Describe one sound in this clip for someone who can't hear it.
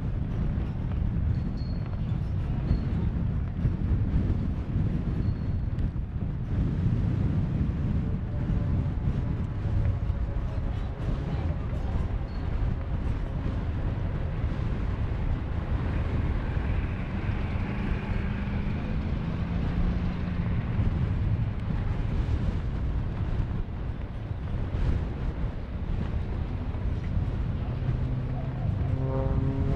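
Wind buffets loudly in a low rumble outdoors.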